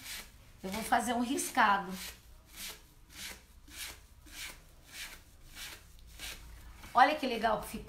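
A sponge dabs and brushes rhythmically against wood.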